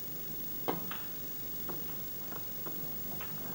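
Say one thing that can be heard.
Snooker balls knock together with light clicks.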